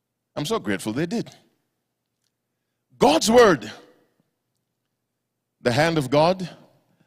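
A man preaches into a microphone with animation, in short phrases separated by pauses.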